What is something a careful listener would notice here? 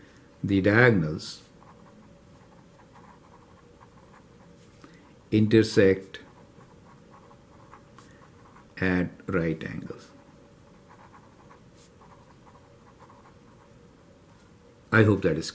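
A marker squeaks and scratches on paper.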